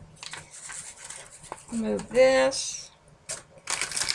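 Paper slides and rustles across a hard surface.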